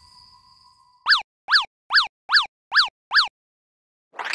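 Six quick bright chirping pops sound one after another as pipes pop into place.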